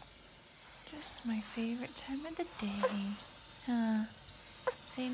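A baby whimpers and sings in a high, wavering voice close by.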